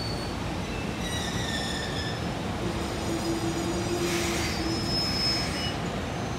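Steel wheels squeal and screech on the rails.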